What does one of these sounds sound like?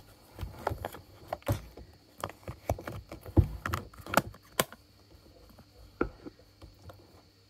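A plastic case creaks and clicks as fingers handle it.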